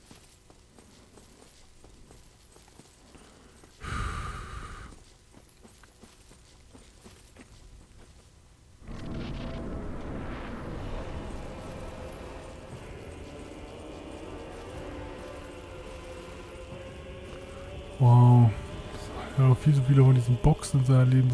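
Heavy armoured footsteps clank on stone.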